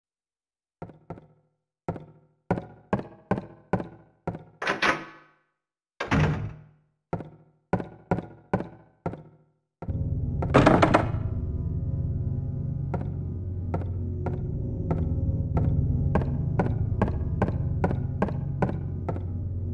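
Footsteps thud quickly across a wooden floor.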